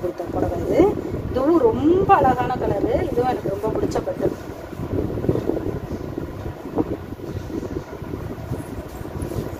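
Fabric rustles softly as hands unfold and handle cloth.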